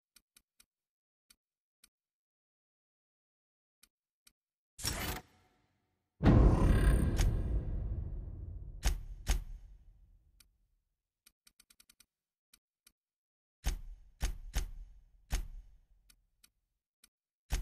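Soft interface clicks tick as menu selections change.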